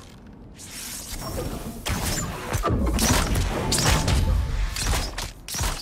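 A bowstring creaks as it is drawn back.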